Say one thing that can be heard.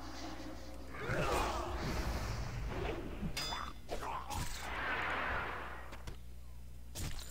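Weapons strike and clash in a fight.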